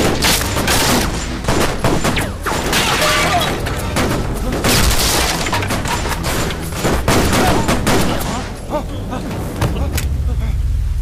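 Gunshots crack rapidly, one after another.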